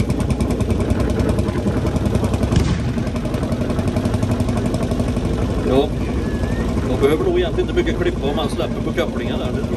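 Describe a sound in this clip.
An old tractor engine idles with a fast, steady chugging.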